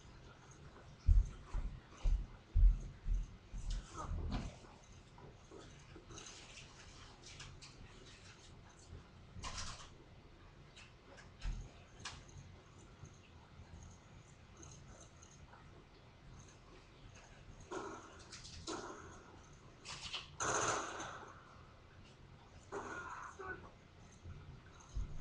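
Gunfire from a video game plays in bursts through a television speaker.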